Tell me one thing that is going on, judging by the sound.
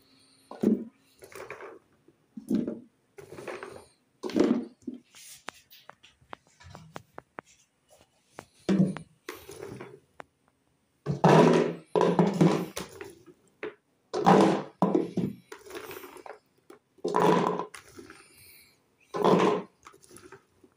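Handfuls of olives rustle and clatter in a plastic bowl.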